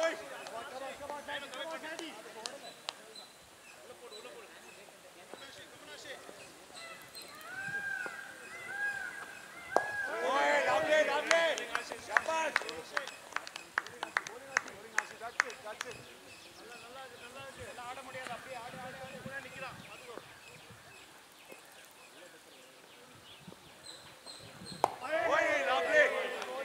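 Several men shout and call out across an open field.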